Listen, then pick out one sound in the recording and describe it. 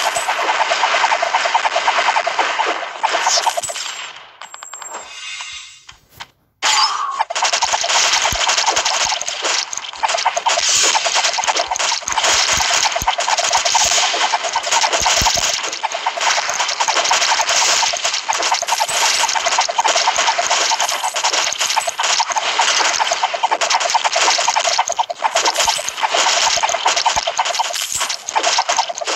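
Mobile action game sound effects of arrows firing and hitting enemies play in quick succession.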